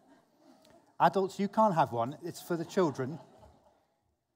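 A middle-aged man speaks calmly through a microphone in a large room.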